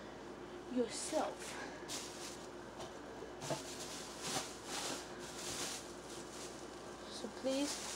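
Clothing rustles close by.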